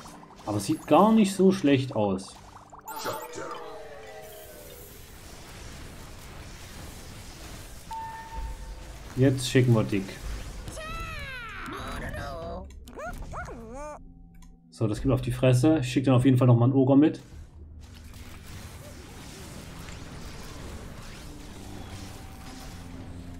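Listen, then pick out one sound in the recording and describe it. Magic spells zap and crackle.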